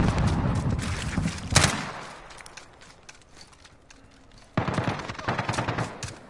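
A rifle fires in rapid bursts of gunshots.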